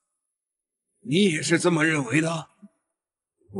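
An elderly man speaks sternly and loudly.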